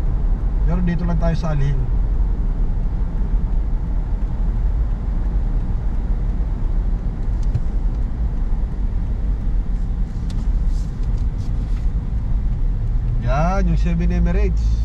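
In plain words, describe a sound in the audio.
A car drives along with a steady, low rumble heard from inside.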